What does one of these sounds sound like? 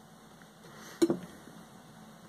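A metal can knocks against a hard surface.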